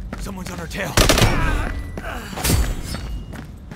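Gunshots crack sharply, a few times.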